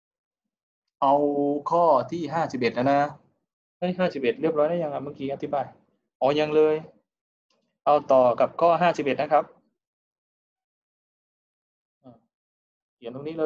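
A young man speaks calmly into a microphone, as if explaining.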